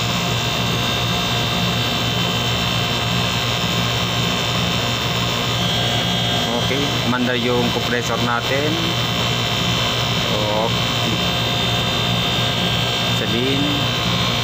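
An electrical unit hums steadily close by.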